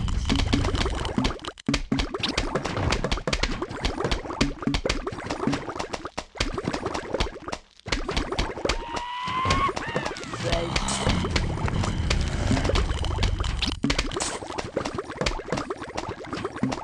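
Game plants pop and shoot peas in quick bursts.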